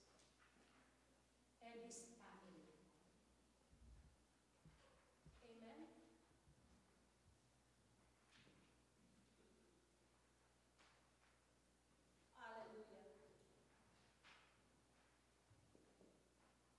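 A woman speaks into a microphone over loudspeakers in an echoing hall, with pauses between phrases.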